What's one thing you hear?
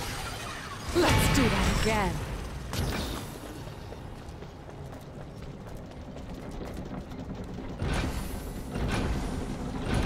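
Magic blasts crackle and boom in a video game.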